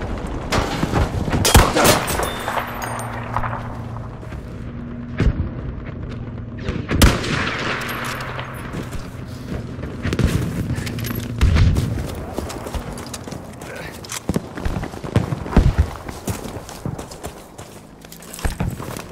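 Gunfire cracks and booms in the distance.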